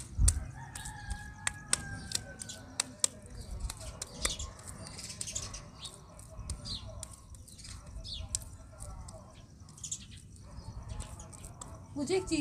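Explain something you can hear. Hands squeeze and pat a ball of wet mud with soft squelches.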